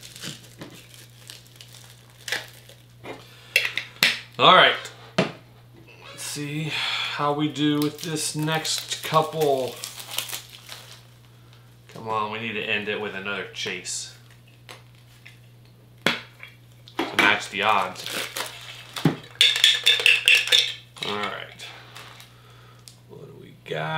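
A metal cup clinks and rattles in a man's hands.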